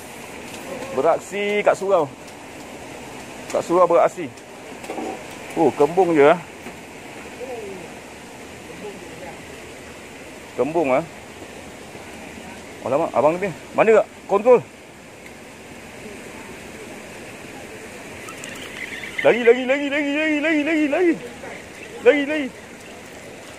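A man speaks close by in short, lively bursts.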